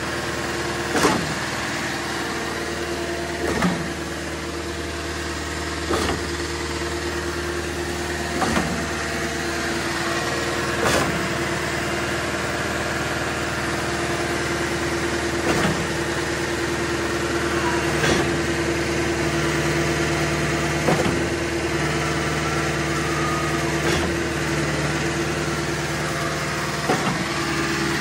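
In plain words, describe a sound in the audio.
A pump thumps with a heavy knock every few seconds.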